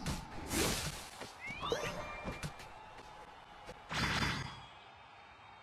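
Game effects whoosh and chime in quick bursts.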